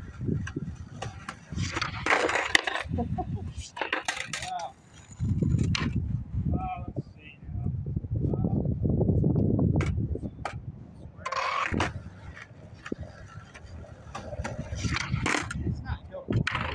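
A skateboard's deck clacks and slaps on concrete.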